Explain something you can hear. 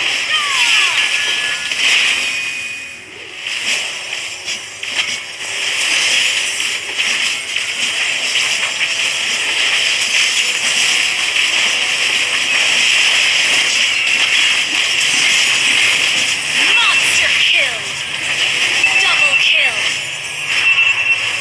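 Game spell effects crackle and clash during a fight.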